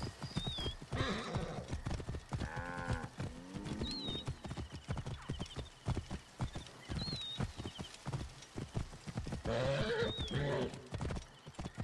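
A young woman talks briefly into a close microphone.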